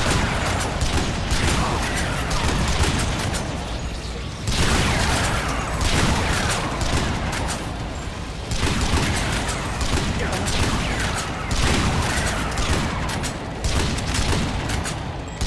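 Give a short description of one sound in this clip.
Explosions boom with a rumbling roar.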